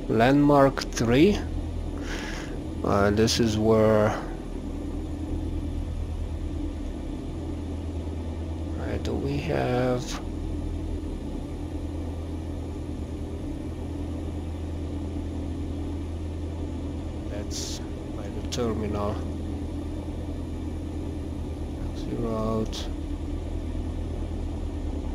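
An aircraft engine idles with a steady low hum.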